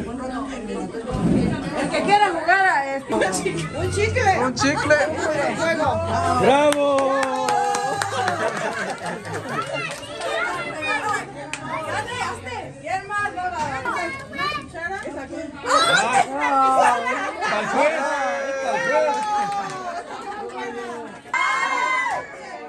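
A crowd of adults and children chatters and laughs nearby.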